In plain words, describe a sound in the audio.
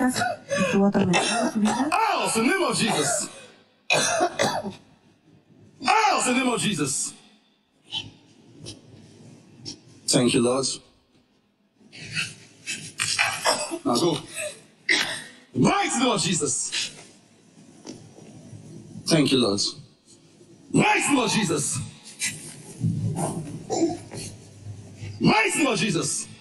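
A man prays loudly and forcefully into a microphone in a large echoing hall.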